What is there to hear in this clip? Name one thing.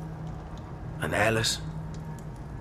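A young man asks a short question in a quiet voice.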